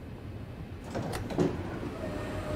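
A train door slides open with a thump.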